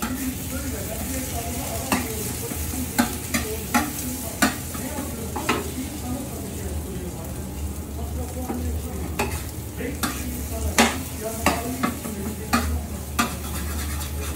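A metal spatula scrapes and taps against a griddle.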